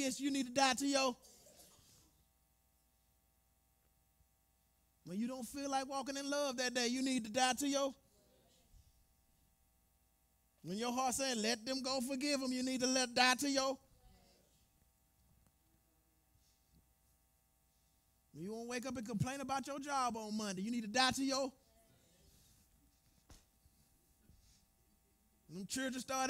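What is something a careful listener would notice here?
A man sings through a microphone in bursts, with pauses between them, in a slightly echoing hall.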